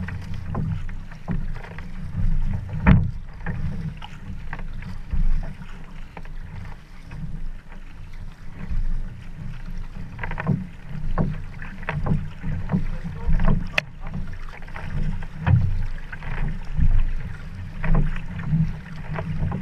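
A paddle splashes rhythmically into water close by.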